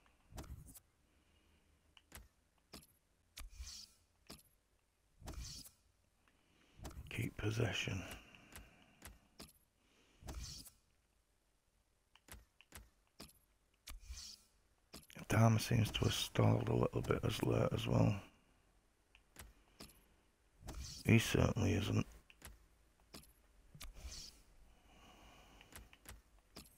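Soft interface clicks and whooshes sound as menu options change.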